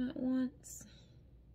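A young woman speaks briefly and calmly close to a microphone.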